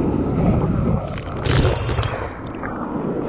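A wave breaks and crashes close by.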